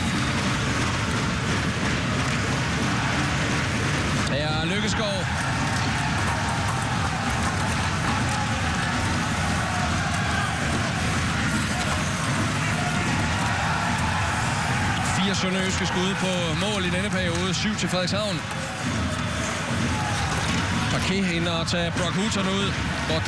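A crowd murmurs and cheers steadily in a large echoing arena.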